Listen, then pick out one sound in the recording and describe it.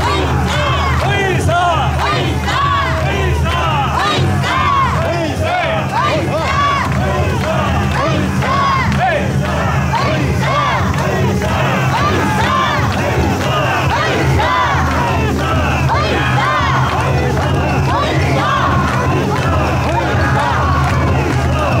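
A large crowd of men and women chant loudly together in a rhythmic call.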